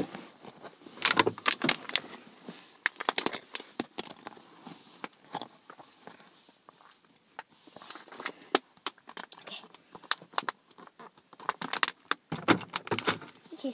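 A plastic bottle crinkles in a hand.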